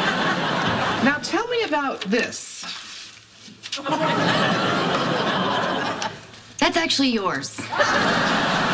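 A young woman speaks briefly, close by.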